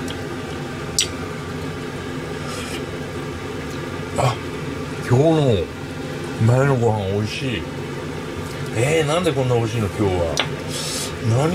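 A metal spoon clinks and scrapes against a pan.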